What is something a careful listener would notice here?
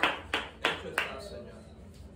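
A man claps his hands sharply several times in an echoing room.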